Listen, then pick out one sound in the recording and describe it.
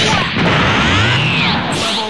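A power-up aura crackles and hums.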